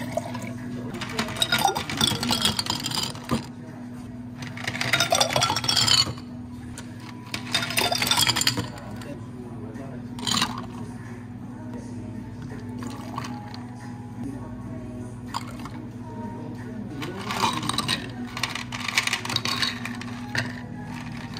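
Ice cubes rattle and clink as they tumble into glass jars.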